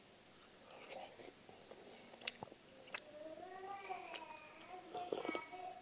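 A young man slurps food from a cup close by.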